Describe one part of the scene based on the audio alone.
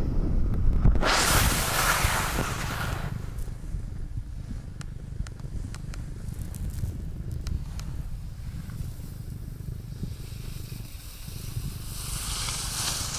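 Skis scrape and hiss over snow close by.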